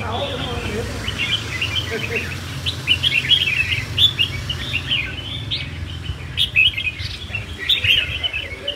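Caged songbirds chirp and trill rapidly.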